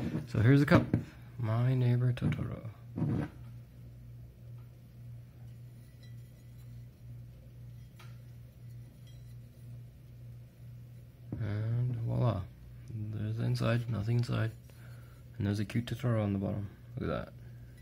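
A ceramic mug knocks lightly as hands turn it over.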